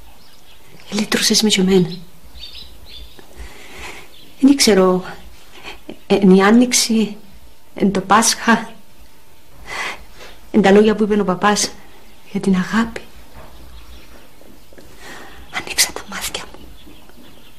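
An older woman speaks close by in an upset, pleading voice.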